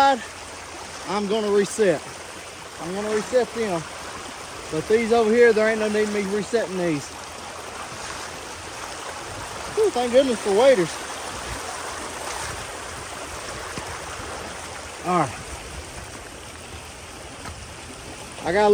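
Water rushes steadily nearby.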